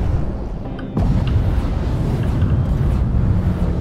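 A harpoon shoots out with a soft whoosh.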